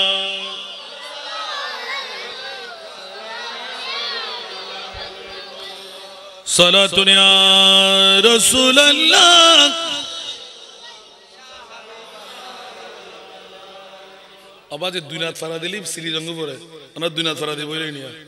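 A man preaches loudly and with fervour through a microphone and loudspeakers.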